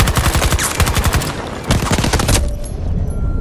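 Rapid gunfire bursts loudly.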